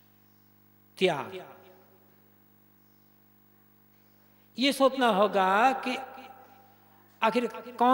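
An elderly man chants into a microphone in slow, drawn-out bursts.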